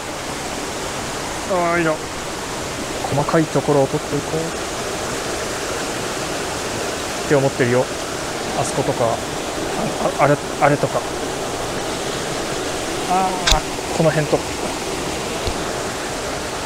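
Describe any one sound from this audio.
A shallow stream trickles and splashes over stones.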